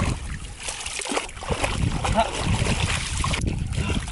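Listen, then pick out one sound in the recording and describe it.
Water splashes as hands scoop in a shallow stream.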